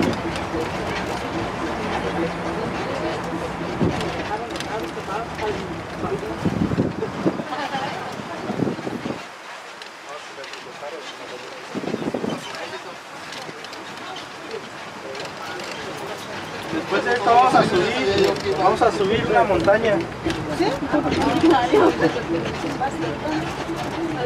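An open tram's engine rumbles steadily as it rolls along.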